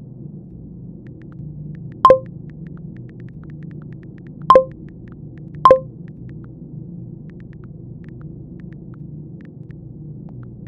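Soft keyboard clicks tap quickly as someone types on a phone.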